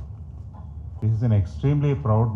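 An elderly man speaks through a microphone in a large hall.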